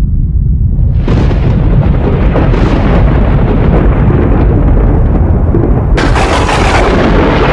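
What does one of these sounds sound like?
Thunder rumbles and crashes loudly.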